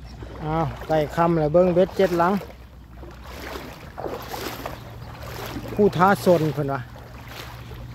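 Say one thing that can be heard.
Feet wade and splash through shallow water.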